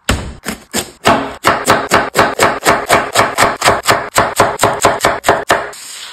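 A knife chops lettuce with crisp crunches.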